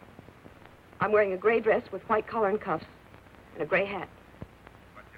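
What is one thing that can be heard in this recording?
A woman speaks quietly into a telephone, close by.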